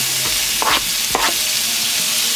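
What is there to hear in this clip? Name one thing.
A knife scrapes food off a board into a pan.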